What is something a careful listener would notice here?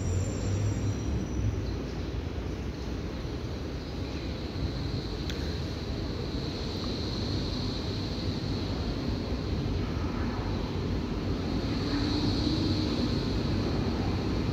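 A train approaches along the tracks with a low rumble that slowly grows louder.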